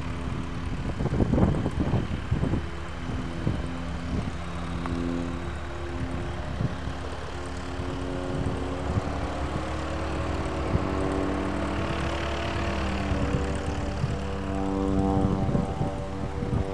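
A small propeller plane's engine idles steadily, its pitch shifting now and then.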